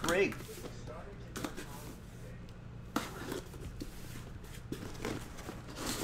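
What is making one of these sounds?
Tape tears off a cardboard box.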